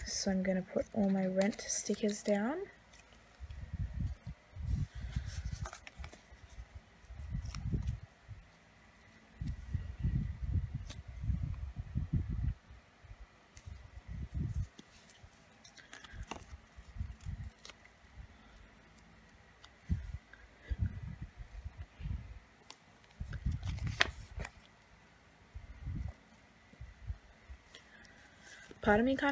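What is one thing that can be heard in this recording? Sticker sheets rustle and crinkle as hands handle them.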